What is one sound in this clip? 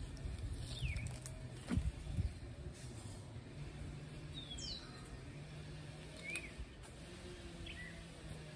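Leaves and soil rustle softly as hands work among plants.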